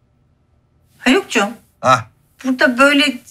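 A man speaks in a raised, agitated voice close by.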